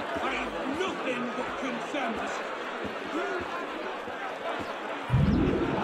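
A large crowd of men and women chatters all around, with many voices overlapping.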